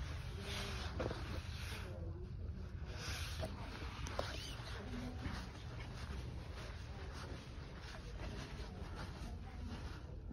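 Footsteps pad softly on carpet.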